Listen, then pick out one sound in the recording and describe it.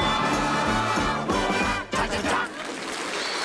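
A band plays lively music.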